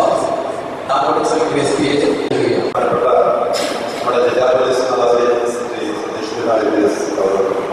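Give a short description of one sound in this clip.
A middle-aged man speaks earnestly through a handheld microphone and loudspeakers.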